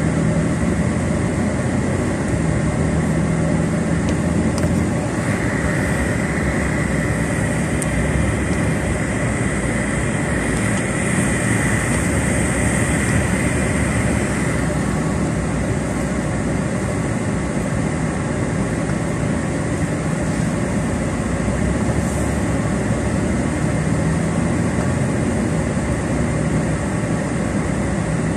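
Tyres roll over a road.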